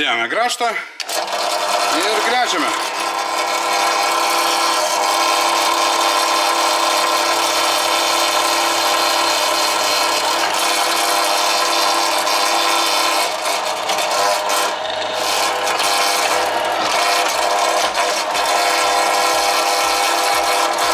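An electric drill press whirs steadily as its bit bores into metal.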